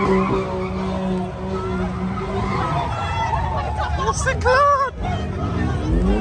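Tyres screech on the road as a car spins.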